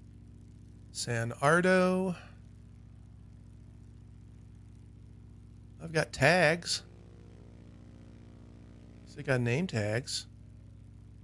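A man speaks in short bursts into a headset microphone, close by.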